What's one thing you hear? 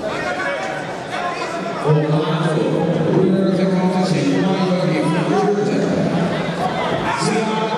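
A crowd cheers and shouts in a large echoing hall.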